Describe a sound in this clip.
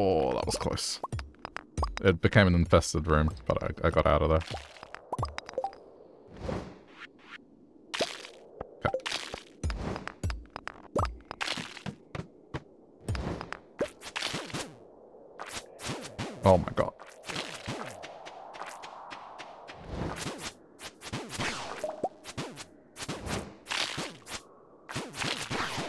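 A pickaxe strikes rock with sharp, repeated clinks.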